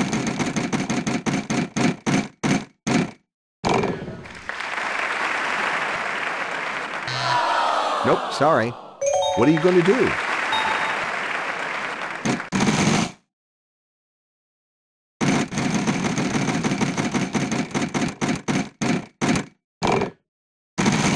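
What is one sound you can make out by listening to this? A spinning prize wheel ticks rapidly, with the clicks slowing down.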